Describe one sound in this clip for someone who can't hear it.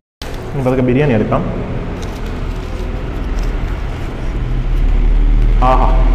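Paper crinkles as a parcel is unwrapped.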